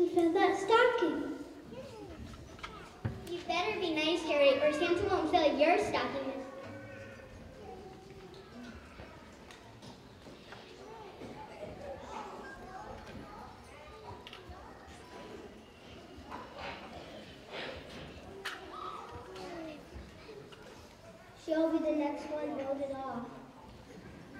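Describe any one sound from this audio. A young boy speaks clearly into a microphone in a large hall.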